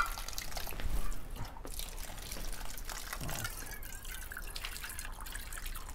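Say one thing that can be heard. Water splashes from a ladle into a stone basin.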